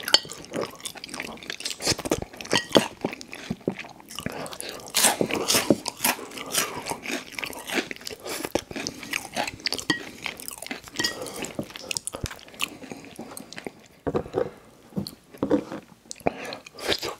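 A man chews and slurps chewy food close to a microphone.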